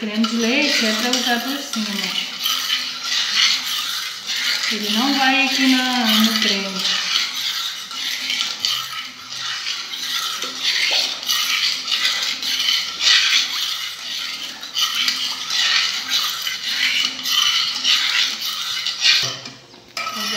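A spoon scrapes and stirs inside a metal pot of thick liquid.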